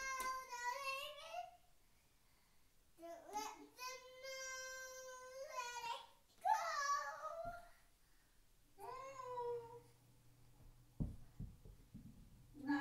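A young girl sings and calls out in a high voice nearby.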